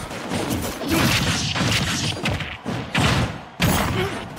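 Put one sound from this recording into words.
Video game fighters trade punches and kicks with sharp hitting sounds.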